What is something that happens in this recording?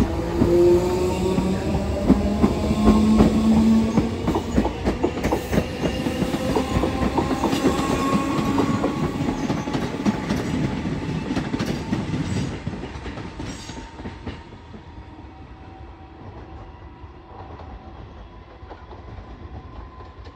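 A train's motors whine as it pulls away and fades into the distance.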